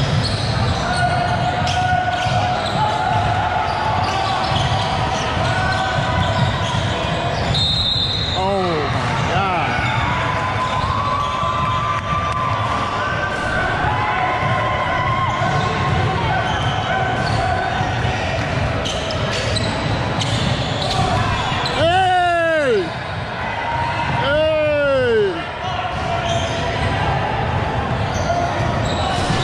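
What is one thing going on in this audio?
Young players and onlookers talk and call out in the echoing hall.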